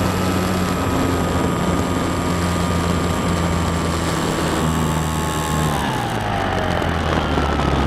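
An electric motor whines steadily as a propeller spins, its pitch dropping as it slows.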